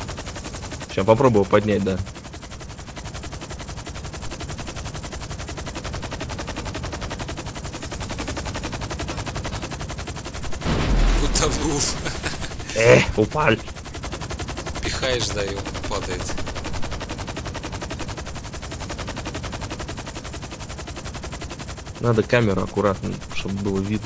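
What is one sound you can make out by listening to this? A man talks with animation into a microphone.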